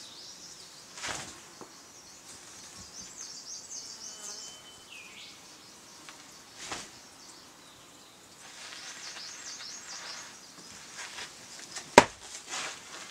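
Loose cloth sleeves snap sharply with quick martial arts strikes.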